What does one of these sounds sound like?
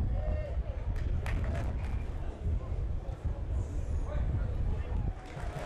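A large crowd murmurs and cheers steadily in an open stadium.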